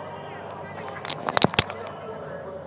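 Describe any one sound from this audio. Cloth rubs and bumps loudly against a microphone close up.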